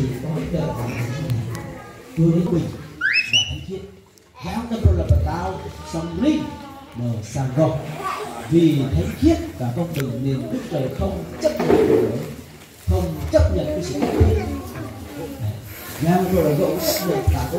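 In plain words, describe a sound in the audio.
A group of adults read aloud together close by.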